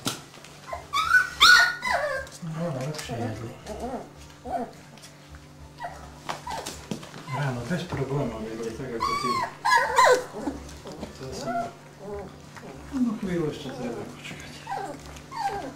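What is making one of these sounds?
Puppies whimper and squeal in high voices.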